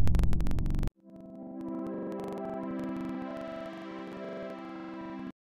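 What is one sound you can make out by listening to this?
A bright, triumphant game tune plays.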